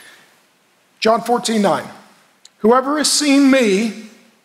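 A middle-aged man speaks with emphasis through a microphone in a large hall.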